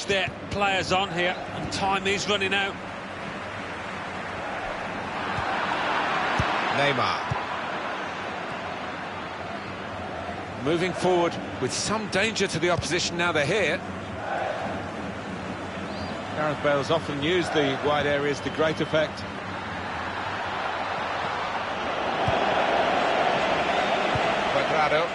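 A large stadium crowd roars and cheers, swelling and fading.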